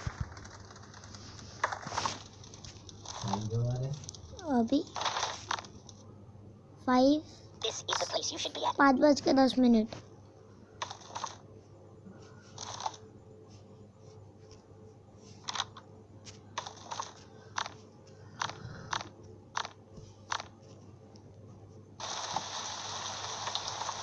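A fire crackles and burns.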